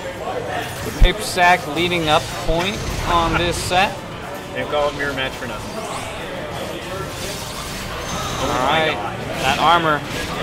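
Energy blasts whoosh and crash as video game fighters attack each other.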